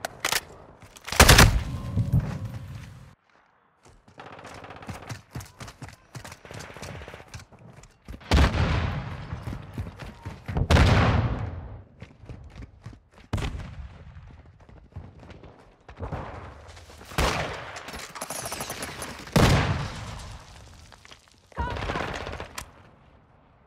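Rifle shots crack in short, loud bursts.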